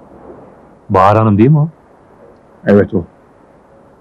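A man speaks loudly and close by.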